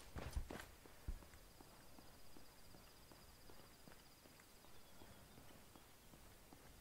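Footsteps crunch steadily on a gravel road.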